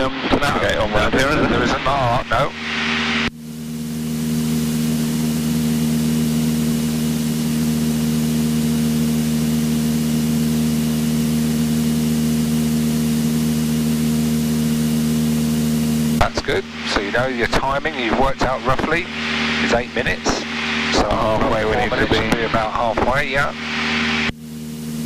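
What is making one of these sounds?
A small plane's engine drones steadily.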